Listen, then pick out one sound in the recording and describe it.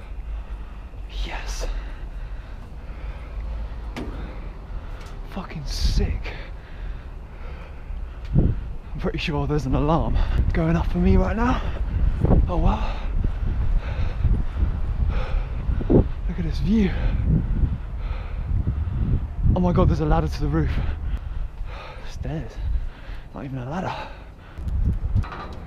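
A young man talks excitedly close to the microphone.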